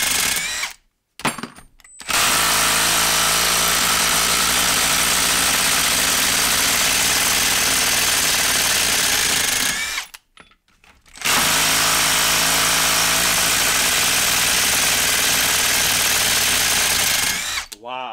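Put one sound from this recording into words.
A cordless impact wrench hammers loudly and rapidly as it drives a bolt into wood.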